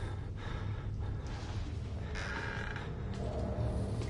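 A wooden door creaks open.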